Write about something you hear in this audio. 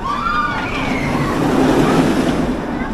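A roller coaster train roars past on its track.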